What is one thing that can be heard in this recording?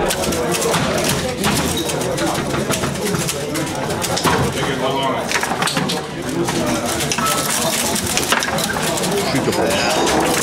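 Foosball rods clack and rattle.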